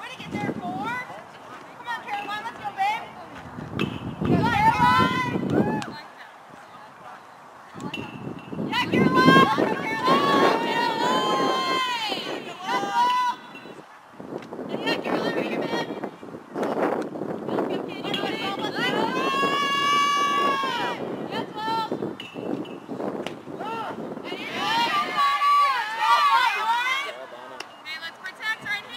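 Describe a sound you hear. Young women chant and cheer loudly in a group outdoors.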